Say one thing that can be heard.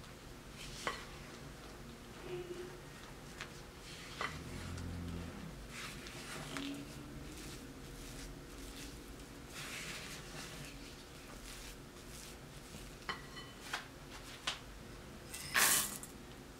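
A spatula scrapes and stirs a thick mixture in a glass bowl.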